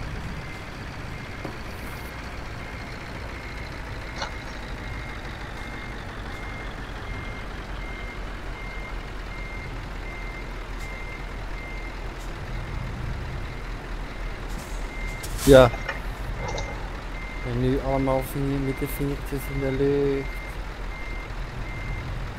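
A truck's reversing alarm beeps at an even pace.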